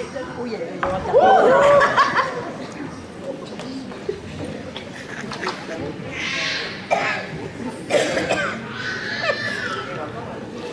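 An elderly woman speaks theatrically in a large echoing hall.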